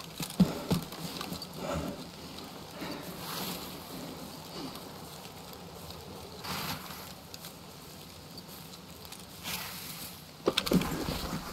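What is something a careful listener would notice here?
Footsteps rustle through tall grass and undergrowth.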